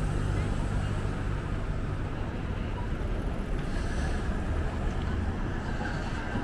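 A small truck drives past close by.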